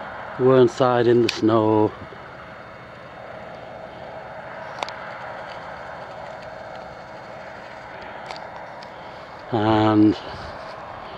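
A train horn sounds loudly in several long blasts.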